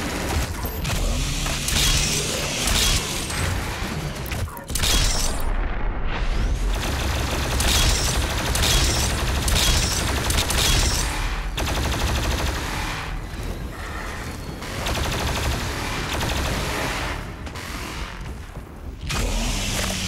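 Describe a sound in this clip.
Monsters growl and shriek.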